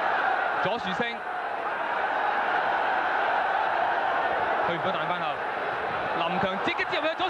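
A large crowd murmurs and roars steadily outdoors.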